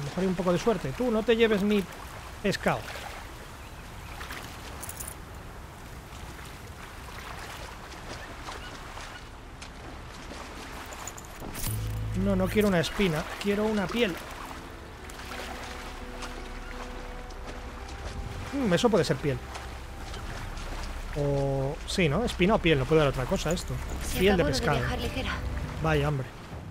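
Water splashes and sloshes as a swimmer paddles through it.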